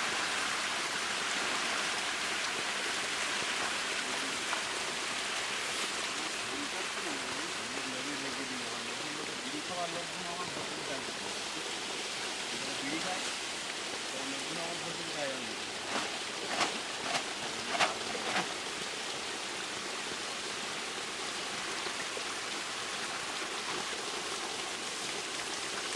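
Fish splash and thrash in shallow water.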